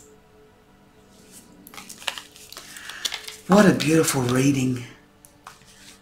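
Playing cards slide and shuffle softly on a table.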